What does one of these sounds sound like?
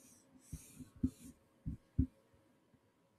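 Hands knock and tap against a microphone.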